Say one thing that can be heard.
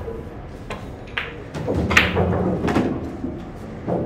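Billiard balls clack together on the table.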